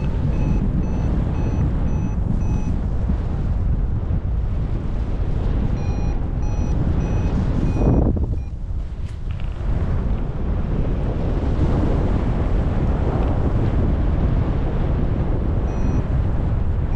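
An electronic flight instrument beeps in quick, repeated bursts.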